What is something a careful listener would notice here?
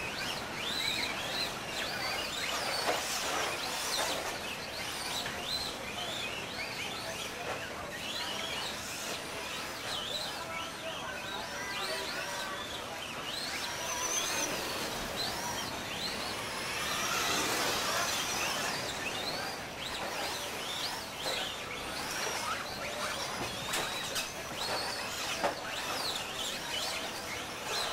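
Small electric motors of toy cars whine, rising and falling in pitch as the cars speed up and slow down.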